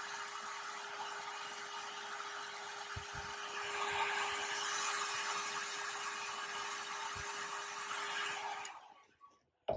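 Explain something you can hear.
A spray can hisses steadily, then stops.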